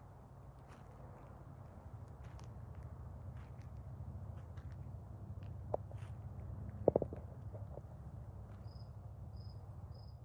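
Elk hooves tread softly on grass nearby.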